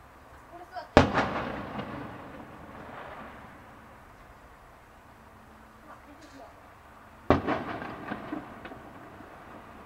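Fireworks boom in the distance and echo.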